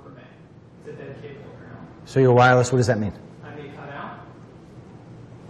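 A man talks calmly into a microphone, with a louder, drawn-out exclamation partway through.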